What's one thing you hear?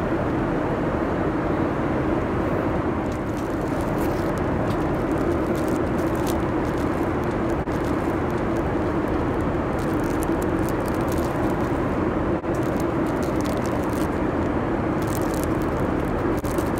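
An aircraft cabin drones with a steady low engine hum.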